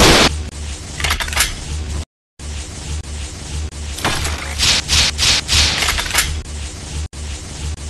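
A laser beam hums and crackles steadily in a video game.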